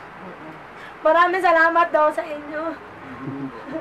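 A woman laughs loudly close by.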